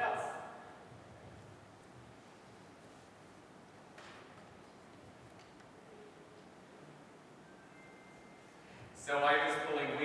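A middle-aged man speaks warmly nearby.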